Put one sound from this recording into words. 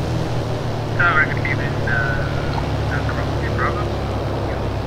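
Tyres squeal briefly as a plane touches down on a runway.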